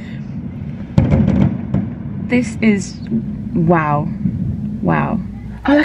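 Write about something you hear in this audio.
Fireworks bang and crackle nearby.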